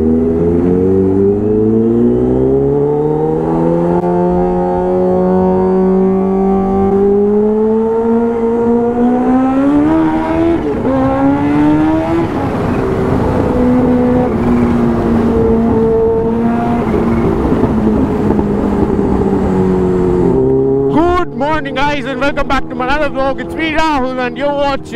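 A motorcycle engine roars close by, its pitch climbing and dropping as it speeds up and shifts gears.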